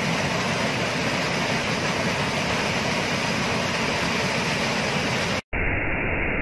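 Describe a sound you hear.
A small waterfall splashes and rushes steadily over rocks.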